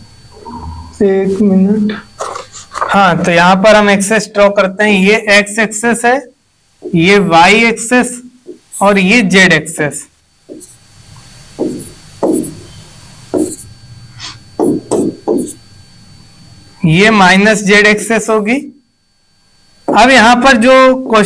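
A young man speaks clearly and with animation into a close microphone, explaining in short bursts with pauses.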